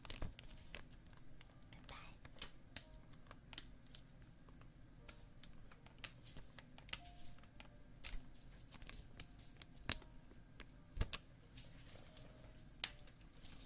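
Hands tap and brush close to a microphone.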